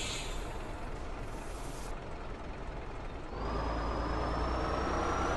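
A truck engine rumbles steadily and rises in pitch as it speeds up.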